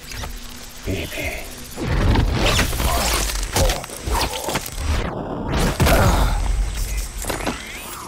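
Heavy thuds and scuffling sounds of a struggle come in bursts.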